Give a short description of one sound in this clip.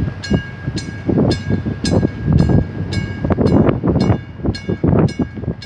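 A warning bell rings rapidly and steadily.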